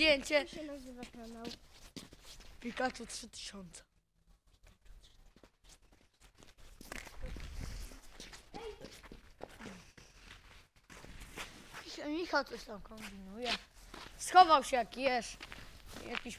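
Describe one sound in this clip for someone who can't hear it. A teenage boy talks with animation close to the microphone.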